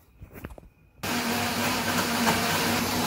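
A blender whirs loudly and steadily.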